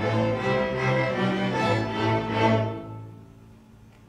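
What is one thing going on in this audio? A string orchestra plays a sustained closing chord in a large hall, then falls silent.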